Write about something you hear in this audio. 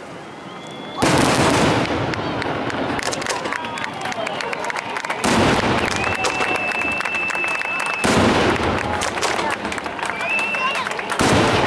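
Fireworks burst with deep booms.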